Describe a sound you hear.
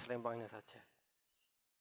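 A man speaks briefly and close to a microphone.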